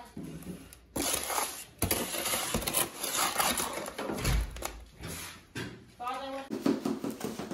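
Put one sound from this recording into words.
A shovel scrapes and slops through wet concrete.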